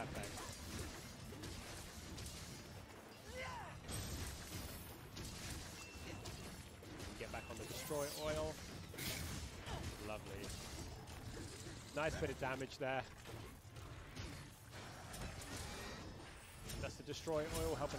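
A monster roars and growls.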